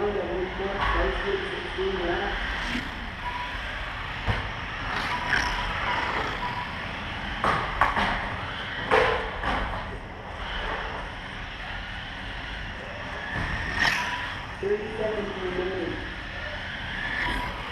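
Small electric motors whine in an echoing hall as toy cars race past.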